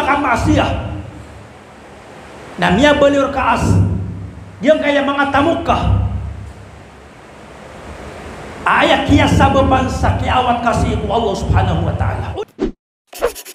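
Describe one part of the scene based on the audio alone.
A man preaches with animation into a headset microphone.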